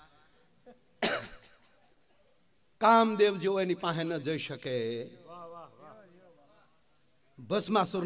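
A middle-aged man sings loudly through a microphone.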